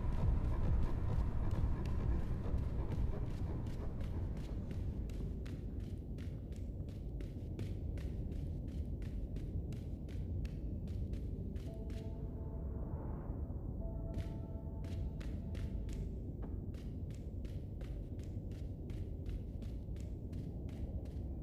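Footsteps run quickly and steadily on a hard floor.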